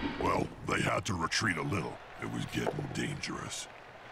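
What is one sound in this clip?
Dice clatter as they roll.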